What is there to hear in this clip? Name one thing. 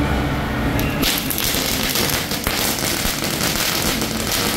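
Firecrackers crackle and pop loudly nearby.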